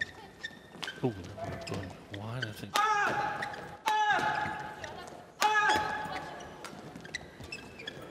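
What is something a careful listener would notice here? Sports shoes squeak loudly on a court floor.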